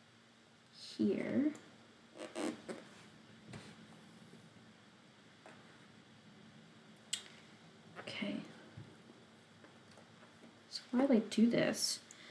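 Thread rasps softly as it is pulled through stiff cloth.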